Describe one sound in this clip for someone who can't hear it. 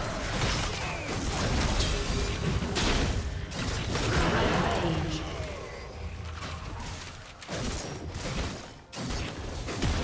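Game spell effects and hits crash and whoosh in a fight.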